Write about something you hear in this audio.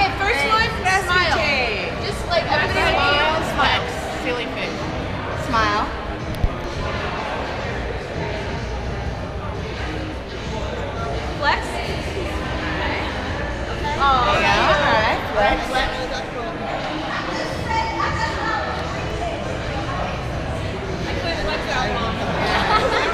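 Young women chatter and laugh close by.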